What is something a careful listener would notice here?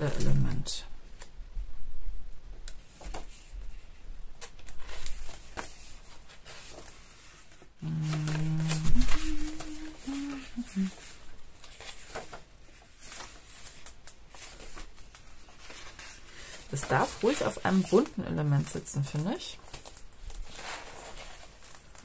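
Paper pages rustle and flutter as they are turned one after another.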